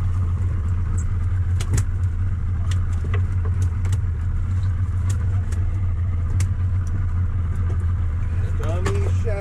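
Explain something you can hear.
Fishing tackle clicks and clatters on a boat deck.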